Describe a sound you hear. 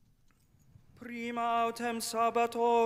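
A man chants in a steady singing voice through a microphone.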